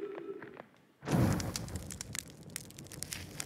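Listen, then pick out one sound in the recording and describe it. A campfire bursts alight with a whoosh and crackles.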